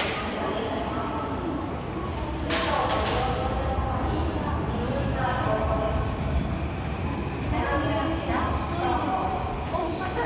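A crowd murmurs in an echoing underground hall.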